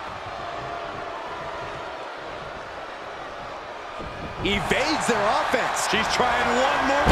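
A crowd cheers in a large arena.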